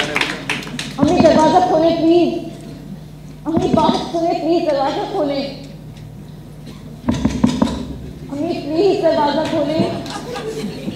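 A woman speaks calmly into a microphone over loudspeakers in an echoing hall.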